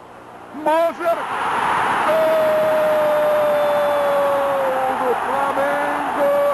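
A large stadium crowd roars loudly.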